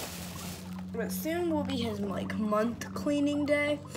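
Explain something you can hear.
A guinea pig squeaks loudly in rising and falling whistles.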